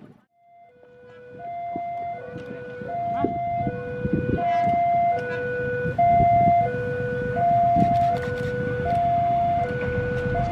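A train rolls slowly into the station.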